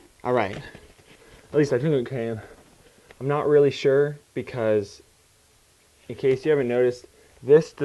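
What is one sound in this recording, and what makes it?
A paper envelope rustles and crinkles in hands.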